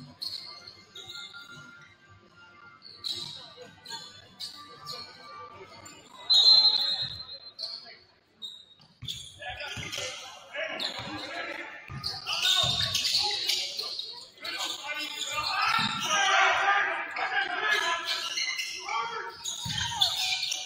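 Sneakers squeak sharply on a hardwood gym floor.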